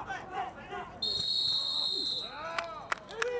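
A referee's whistle blows a sharp blast.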